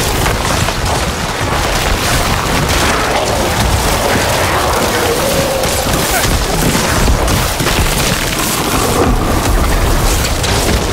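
Blows and explosions thud repeatedly.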